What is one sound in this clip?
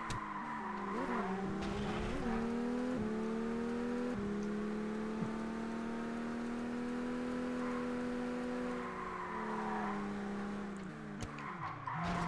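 A car engine revs high and shifts up through the gears.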